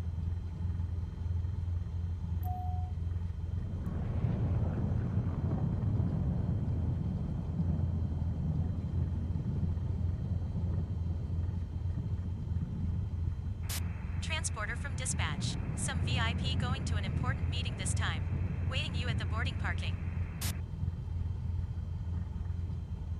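A small plane's engine idles with a steady low drone.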